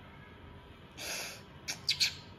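Water splashes softly in a small bowl.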